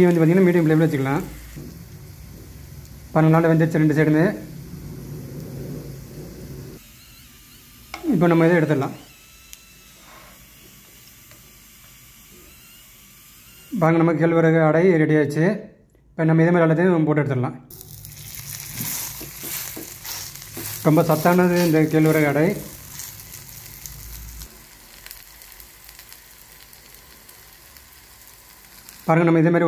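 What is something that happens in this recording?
Food sizzles softly in a frying pan.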